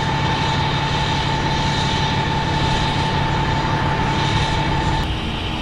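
A fire truck's engine idles steadily nearby.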